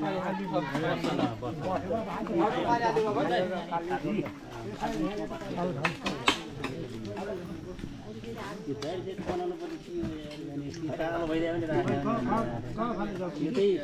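A crowd of men chatter.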